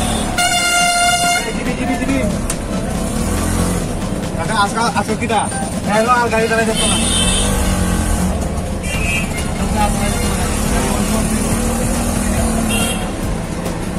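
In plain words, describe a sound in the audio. An auto-rickshaw engine rumbles steadily close by.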